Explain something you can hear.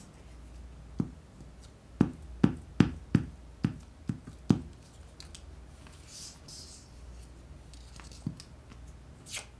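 Paper rustles and crinkles under hands.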